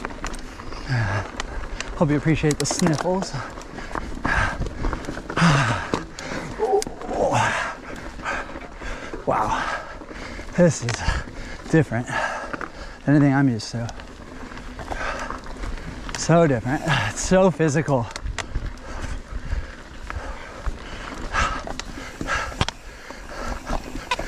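Bike tyres crunch and rattle over a rough dirt trail.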